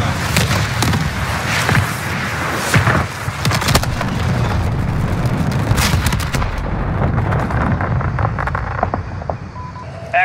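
Large explosions boom and rumble in the distance.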